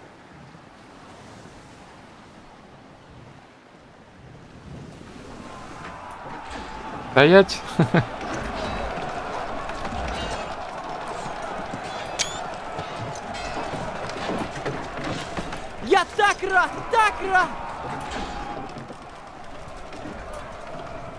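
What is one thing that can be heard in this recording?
Waves wash gently against wooden sailing ships on open water.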